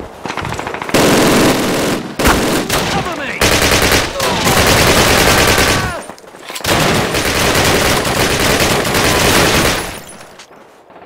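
A submachine gun fires loud rapid bursts.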